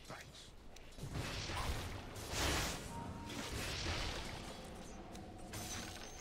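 Magic blasts and clashing weapons burst loudly in a video game fight.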